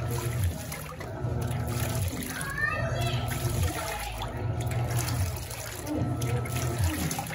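A washing machine churns and sloshes water back and forth with a low rhythmic hum.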